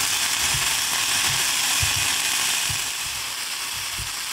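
Chopsticks stir and tap against a frying pan.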